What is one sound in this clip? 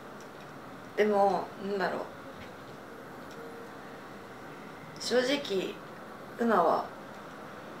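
A young woman speaks haltingly and softly, close by.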